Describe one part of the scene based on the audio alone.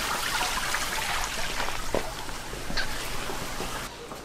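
Footsteps walk on a hard floor.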